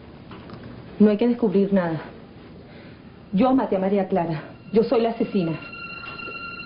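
A young woman speaks in a tense voice, close by.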